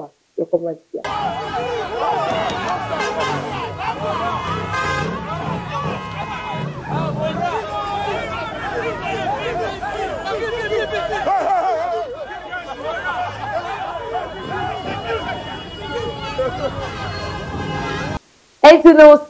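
Several men talk and call out over one another outdoors.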